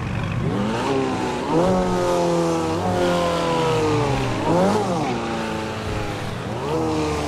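A sports car engine roars loudly, revving up and dropping with each gear change.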